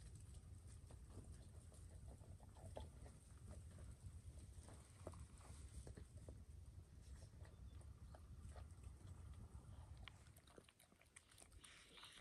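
A dog laps and chews food from a metal bowl.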